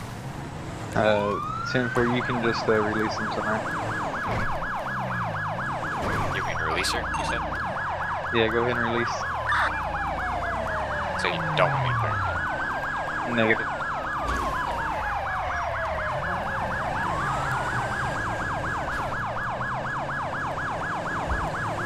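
A police siren wails and yelps, rising and falling.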